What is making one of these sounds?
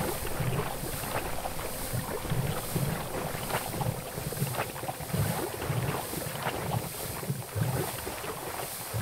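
Armoured footsteps splash through shallow water.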